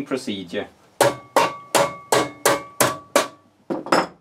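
A screwdriver clicks sharply against a metal case, each click ringing briefly.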